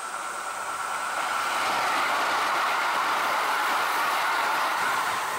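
A train rumbles past close by on the tracks, growing louder.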